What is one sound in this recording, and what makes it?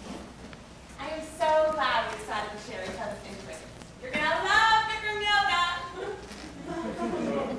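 A woman speaks loudly and expressively, heard from a distance in a hall.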